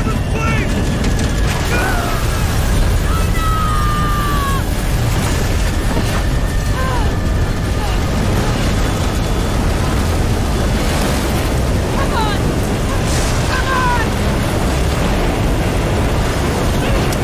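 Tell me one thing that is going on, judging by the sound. Strong wind roars steadily.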